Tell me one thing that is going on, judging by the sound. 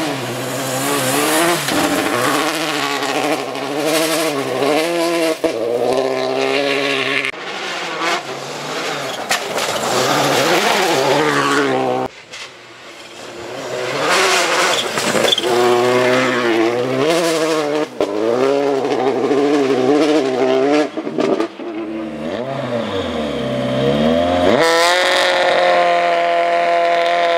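A rally car engine roars past, revving hard and rising and falling in pitch.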